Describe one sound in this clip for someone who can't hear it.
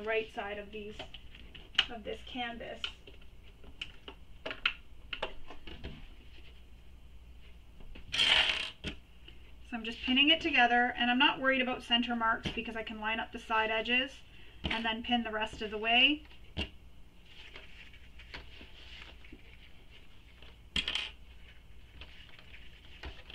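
Fabric rustles and pins click as they are handled.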